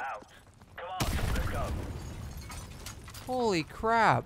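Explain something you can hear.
An explosion booms, followed by a low rumble.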